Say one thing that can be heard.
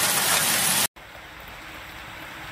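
Hail falls softly on the ground.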